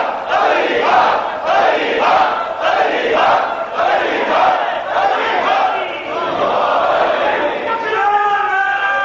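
A crowd of men chants loudly in a steady rhythm.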